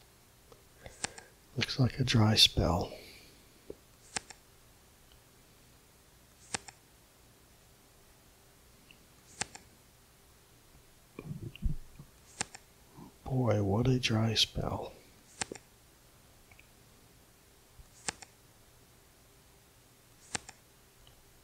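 A playing card flips over with a short, crisp click, again and again at an even pace.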